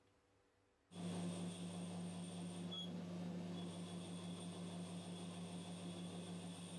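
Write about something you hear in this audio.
A metal lathe hums and whirs steadily.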